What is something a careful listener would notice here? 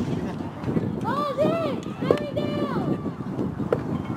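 Young women shout and chant in a sing-song way from across an outdoor field.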